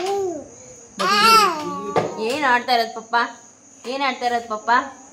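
A small child whines and cries close by.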